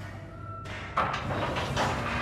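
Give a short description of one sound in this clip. A heavy wooden lid creaks and thuds open.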